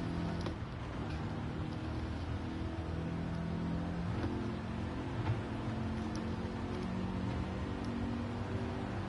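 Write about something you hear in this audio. A car engine hums steadily and shifts pitch as it accelerates.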